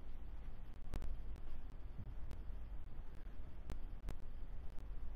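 Billiard balls clack sharply against each other on a pool table.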